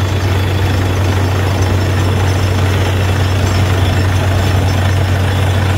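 A drilling rig's engine roars loudly and steadily.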